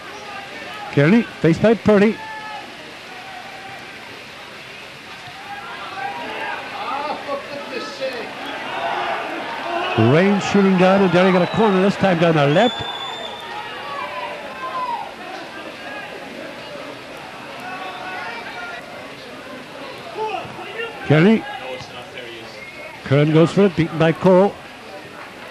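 Men shout loudly across an open pitch outdoors.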